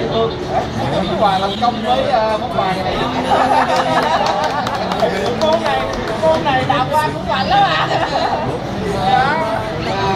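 Several men laugh heartily nearby.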